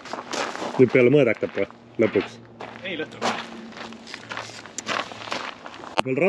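Gravel crunches under footsteps.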